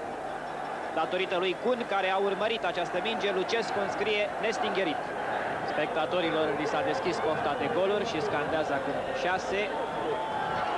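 A large stadium crowd bursts into loud cheers and shouts.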